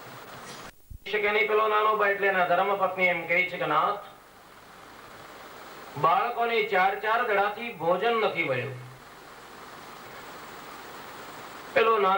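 An elderly man speaks slowly and solemnly into a microphone, heard through loudspeakers.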